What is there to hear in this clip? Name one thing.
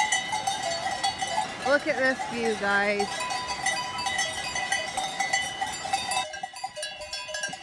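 Many cowbells clang and jingle close by.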